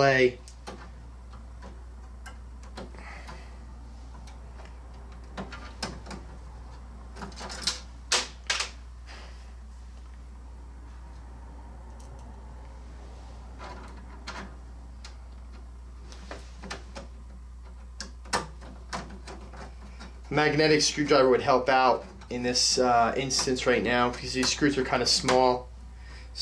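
A screwdriver clicks and scrapes against metal parts.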